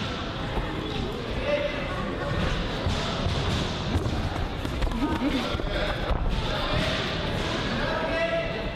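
A crowd of spectators shouts and calls out in an echoing hall.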